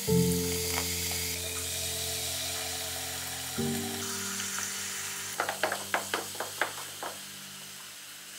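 Soda water fizzes and crackles with bubbles.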